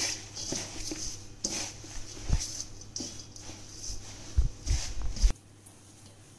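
Hands toss and squeeze a mass of leafy greens in a metal bowl, rustling and crunching.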